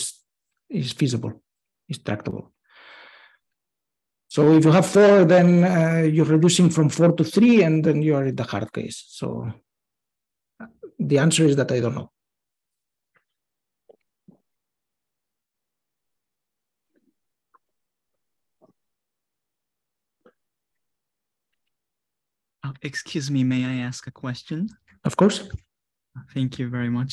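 A man speaks calmly through a microphone in an online call, with long pauses.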